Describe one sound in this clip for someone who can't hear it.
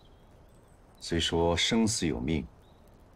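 A man speaks calmly and quietly, close by.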